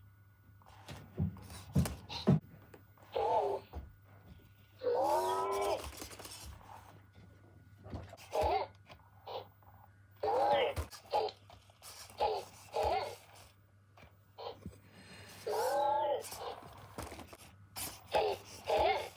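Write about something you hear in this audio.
A toy robot's motor whirs as it rolls across carpet.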